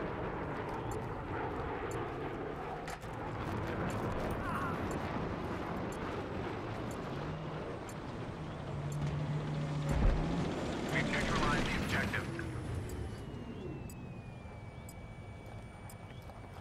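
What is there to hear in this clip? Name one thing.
Rifle shots crack in bursts.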